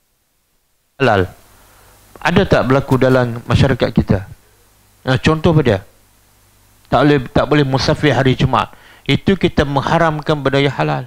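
A middle-aged man lectures.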